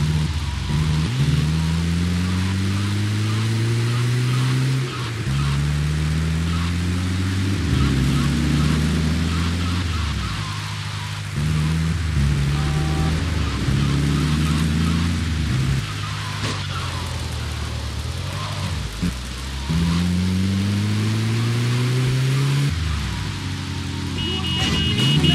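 Tyres screech briefly as a vehicle turns sharply.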